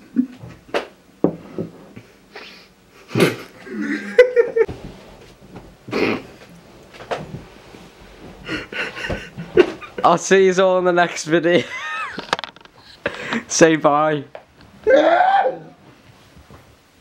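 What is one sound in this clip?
A young man talks and laughs close by.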